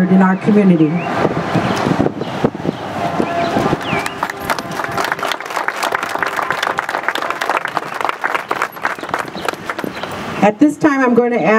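People clap their hands in applause.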